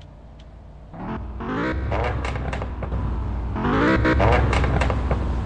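A car engine revs loudly, rising in pitch twice.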